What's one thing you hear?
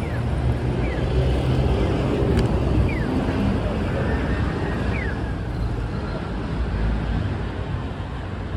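Footsteps of several people pass by on pavement outdoors.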